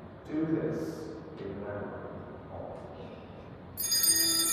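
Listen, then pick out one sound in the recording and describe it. An elderly man speaks calmly and slowly in a large echoing room.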